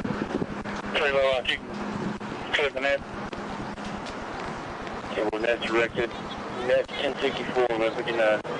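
A man speaks firmly and loudly, close to a microphone.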